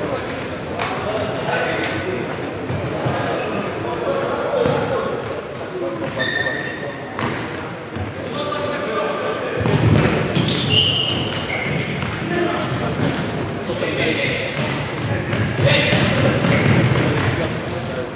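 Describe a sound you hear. A ball thuds as it is kicked, echoing in a large hall.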